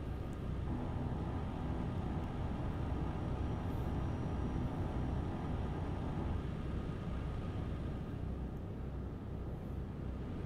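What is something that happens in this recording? A truck engine hums steadily while driving.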